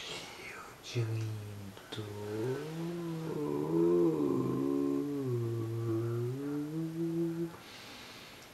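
A young man sings a slow melody close by.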